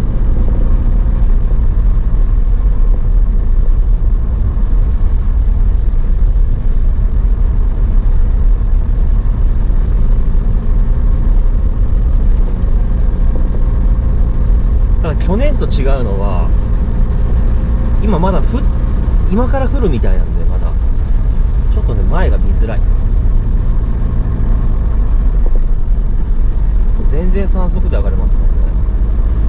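Tyres crunch and hiss over packed snow.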